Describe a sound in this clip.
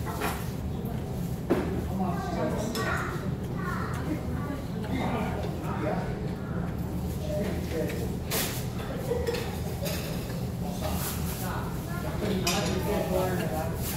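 Meat sizzles on a grill.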